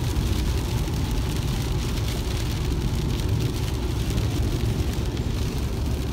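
A car engine rumbles low and steady inside the cabin.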